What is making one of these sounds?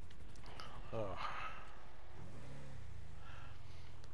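A metal garage gate rattles open.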